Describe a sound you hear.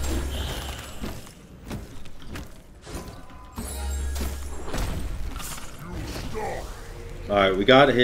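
Game sound effects whoosh and clash.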